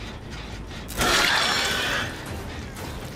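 A heavy blade strikes with a sharp slashing hit.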